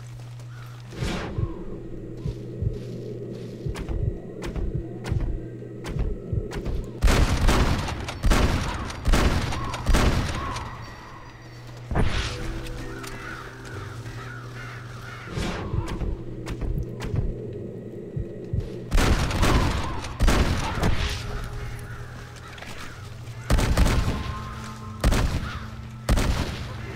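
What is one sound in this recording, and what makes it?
Gunshots ring out in quick bursts, echoing outdoors.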